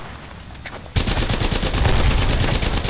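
A video game gun fires.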